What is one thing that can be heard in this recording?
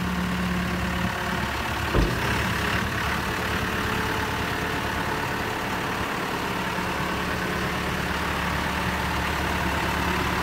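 A large diesel engine idles with a steady low rumble.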